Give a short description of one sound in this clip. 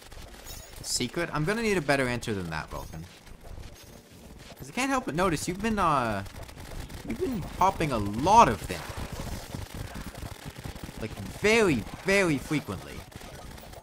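Electronic video game combat effects zap and blast in bursts.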